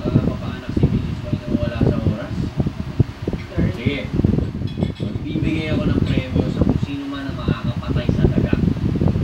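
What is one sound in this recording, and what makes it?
A young man speaks forcefully and with agitation, close by.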